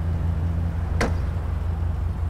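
A car door shuts with a thud.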